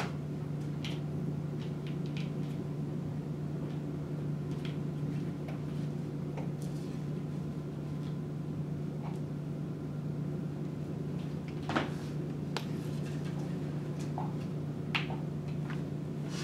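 Small objects knock and clatter softly on a hard floor.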